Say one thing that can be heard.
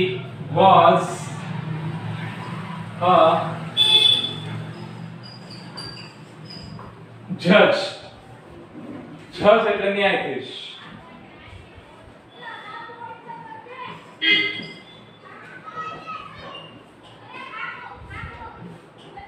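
A young man speaks clearly, explaining to listeners nearby.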